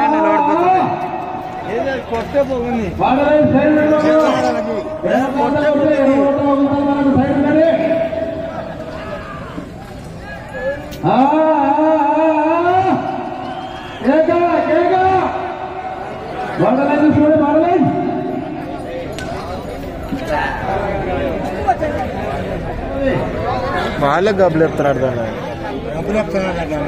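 A crowd chatters outdoors in the distance.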